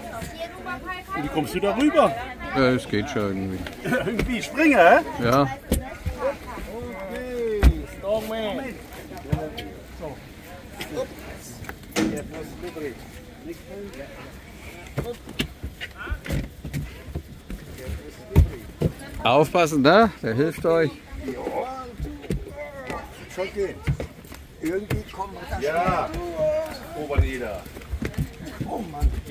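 Men talk and call out to each other nearby, outdoors.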